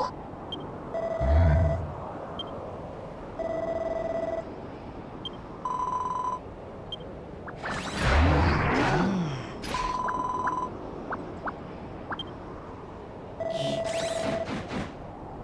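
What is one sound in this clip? Short electronic tones chime in bursts.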